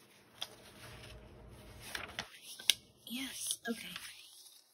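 Paper pages rustle as a notebook's pages are turned by hand.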